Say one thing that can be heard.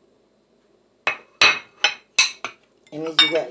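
A spoon scrapes and clinks against a plate.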